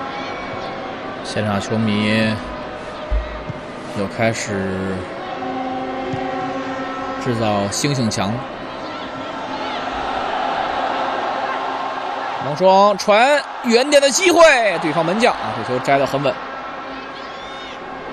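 A large stadium crowd murmurs and cheers in the distance.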